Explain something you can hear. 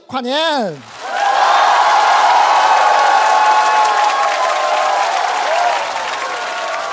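A large crowd cheers loudly.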